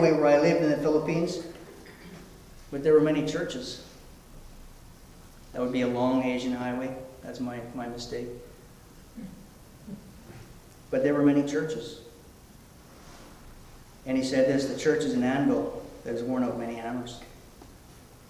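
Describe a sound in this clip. A man sings slowly into a microphone.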